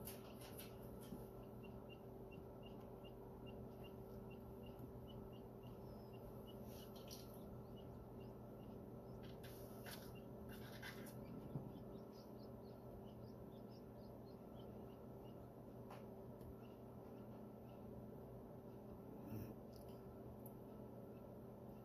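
A chick peeps softly and rapidly from inside an egg.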